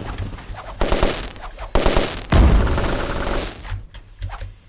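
Bursts of magic and sword slashes whoosh and crackle loudly.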